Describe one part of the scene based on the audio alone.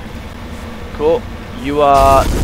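A young man talks briefly into a headset microphone.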